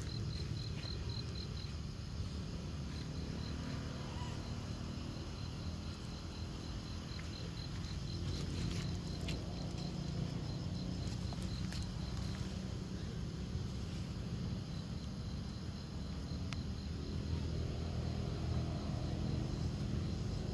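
Dry leaves rustle under a small monkey moving on the forest floor.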